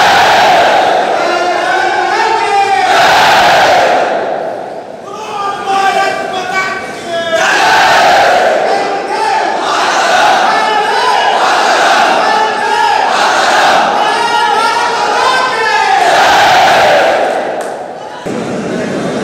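A large crowd of men chants and shouts loudly in unison.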